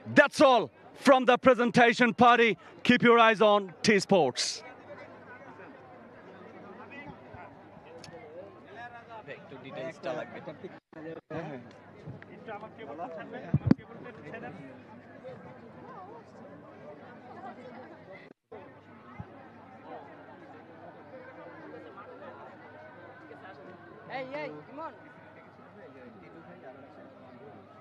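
A crowd of men chatters and calls out nearby.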